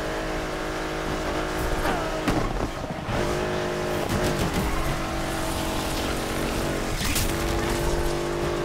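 A sports car engine roars steadily at high speed, with brief changes in pitch as gears shift.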